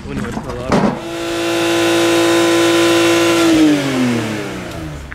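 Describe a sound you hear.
A sports car engine revs and holds a steady high note, then drops back toward idle.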